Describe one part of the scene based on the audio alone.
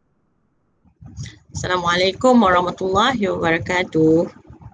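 A middle-aged woman speaks calmly through an online call.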